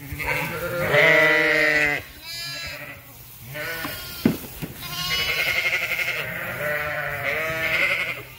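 Sheep and lambs bleat loudly all around.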